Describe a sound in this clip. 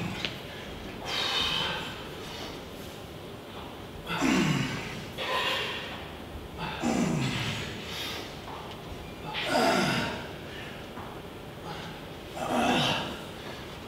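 A man grunts and exhales loudly with effort.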